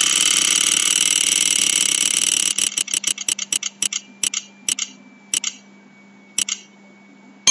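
A spinning prize wheel clicks rapidly, the ticks slowing down until they stop.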